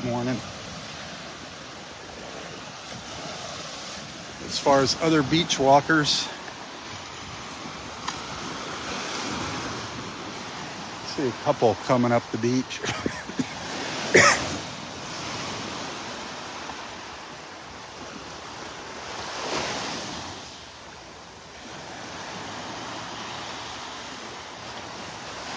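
Small waves wash and break gently onto the shore.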